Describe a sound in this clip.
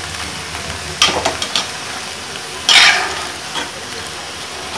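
A spatula scrapes and stirs leafy greens in a metal pan.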